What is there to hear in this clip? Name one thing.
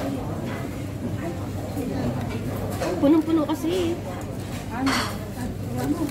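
Men and women chatter nearby.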